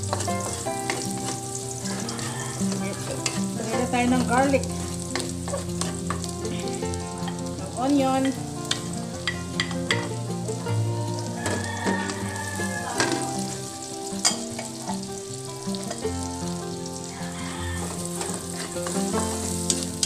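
A wooden spatula scrapes and stirs food in a metal wok.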